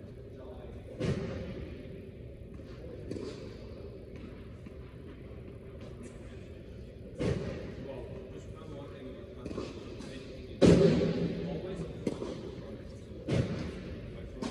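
Tennis balls are struck with rackets, each hit ringing through a large echoing hall.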